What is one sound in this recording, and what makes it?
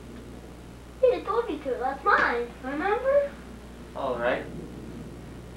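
A young child speaks with animation close by.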